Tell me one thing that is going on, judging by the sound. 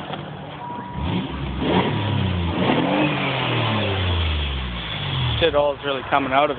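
A car engine revs up and winds back down several times.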